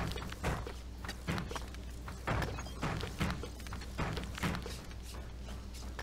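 Footsteps thud at a steady pace.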